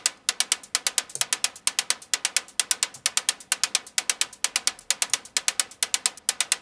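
A modular synthesizer plays a fast, even rhythm of sharp, bright electronic clicks.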